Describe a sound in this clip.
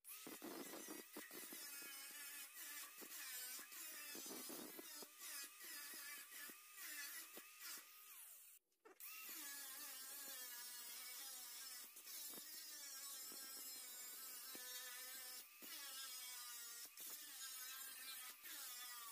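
An angle grinder whines loudly as it cuts and grinds metal.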